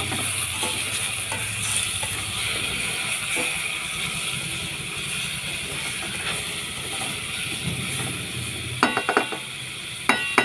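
A spatula scrapes and stirs food in a metal pot.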